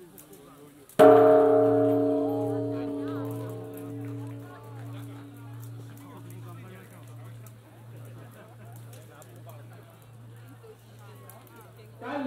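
A large bell is struck once and rings with a long, slowly fading hum.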